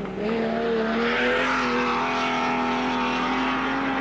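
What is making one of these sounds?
Tyres skid and spray dirt through a turn.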